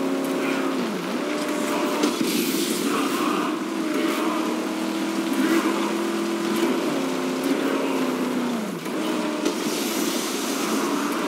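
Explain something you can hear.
Tyres hiss and rumble over sand.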